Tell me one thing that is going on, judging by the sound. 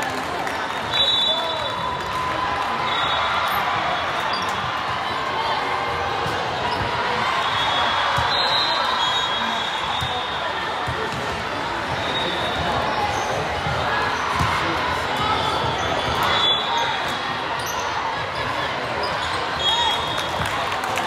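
Shoes squeak sharply on a wooden court.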